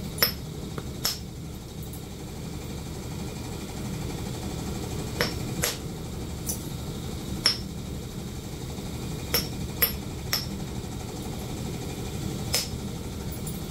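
A small rotary tool whirs steadily.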